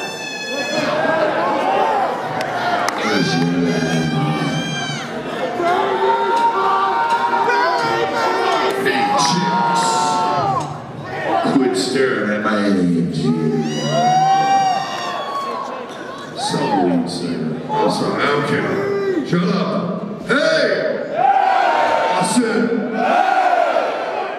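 A man sings loudly through a microphone on stage.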